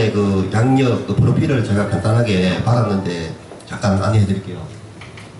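A man speaks through a microphone and loudspeakers in an echoing hall.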